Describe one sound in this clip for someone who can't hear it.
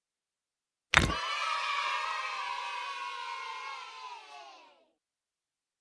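A bright, cheerful jingle plays with a burst of sparkling chimes, then fades.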